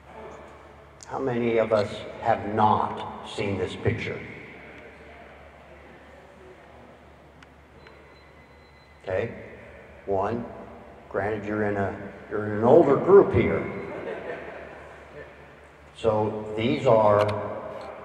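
An older man speaks calmly through a microphone and loudspeakers in a large echoing hall.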